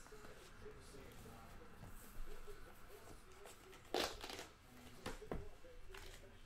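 A cardboard box lid slides and lifts open.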